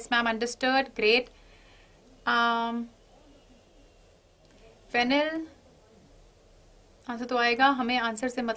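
A young woman speaks calmly and clearly into a close microphone, in short bursts with pauses.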